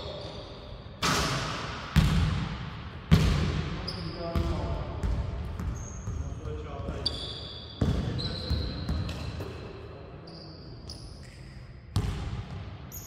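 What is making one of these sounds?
A basketball bounces on a hardwood floor, echoing through a large hall.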